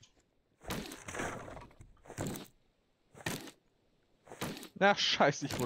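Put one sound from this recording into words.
An axe chops into wood with repeated thuds.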